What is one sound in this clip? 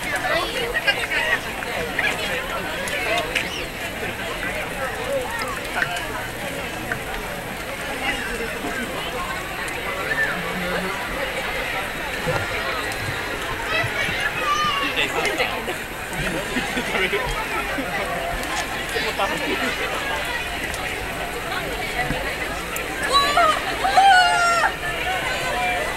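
A dense crowd chatters all around outdoors.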